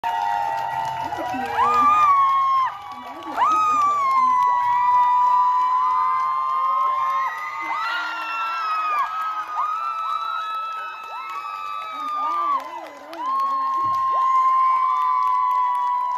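A woman sings loudly into a microphone, holding long notes.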